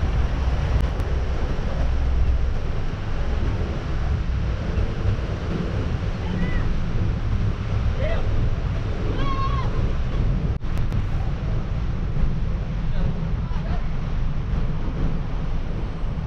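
Wind blows hard and buffets outdoors.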